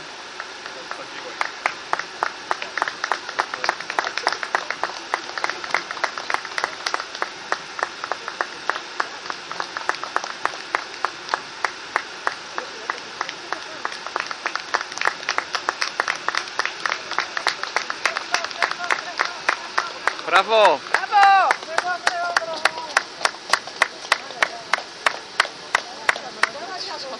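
Spectators clap in rhythm outdoors.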